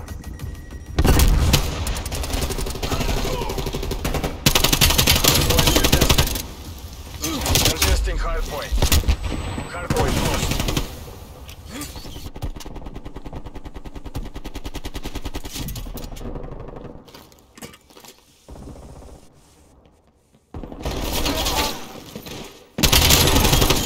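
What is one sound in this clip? A compact assault rifle fires in automatic bursts.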